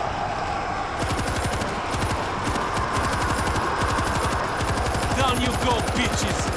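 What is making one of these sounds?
A heavy machine gun fires in a fast, continuous burst.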